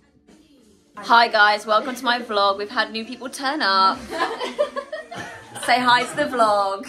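A young woman talks excitedly and close up.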